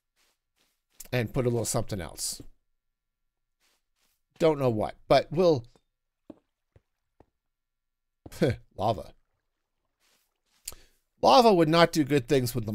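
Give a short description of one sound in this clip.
A middle-aged man talks with animation into a close microphone, in short bursts.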